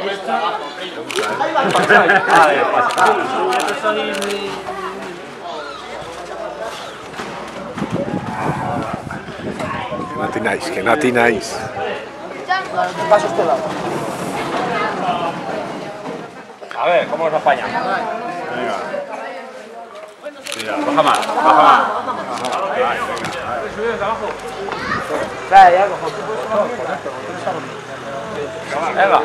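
A crowd of men talk and call out close by.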